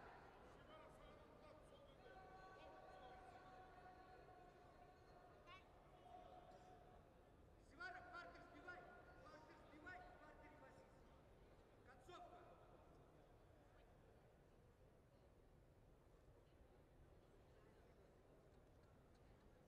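A crowd murmurs and calls out in a large echoing arena.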